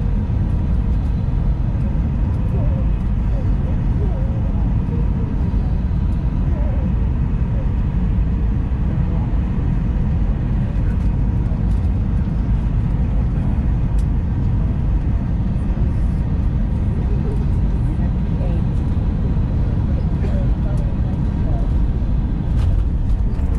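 Jet engines roar steadily from inside an airliner cabin.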